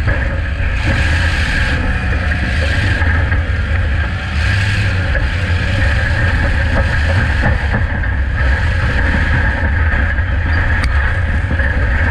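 A race car engine roars loudly up close.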